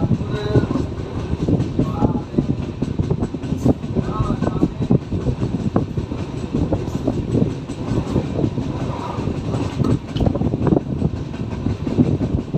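Wind rushes past an open train door.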